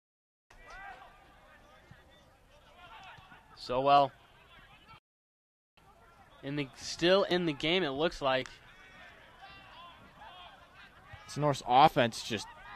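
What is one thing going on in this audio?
Young men shout loudly across an open playing field.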